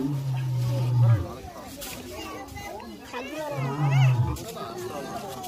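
A lion grunts deeply in short bursts.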